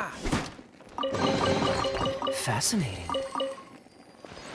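A bright chime rings out as a chest opens.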